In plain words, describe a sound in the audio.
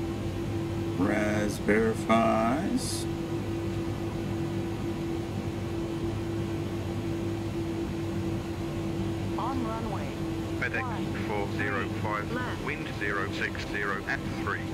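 A man talks into a microphone, close by.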